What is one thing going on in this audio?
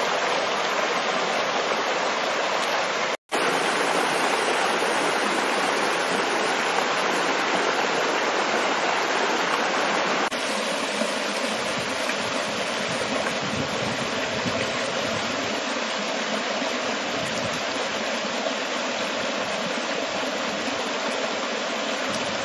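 Water rushes and splashes steadily over rocks in a stream nearby.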